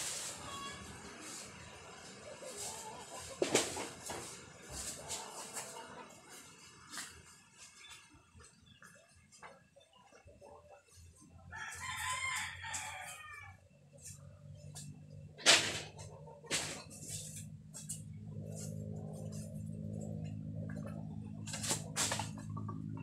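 Footsteps crunch on dry leaves on the ground.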